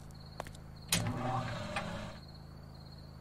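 A game menu opens with a short whoosh.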